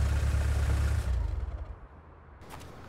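A car engine rumbles low nearby.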